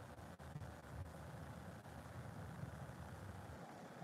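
Thick paint pours softly from a plastic cup.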